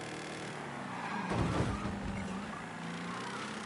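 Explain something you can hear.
A car engine revs loudly for a moment.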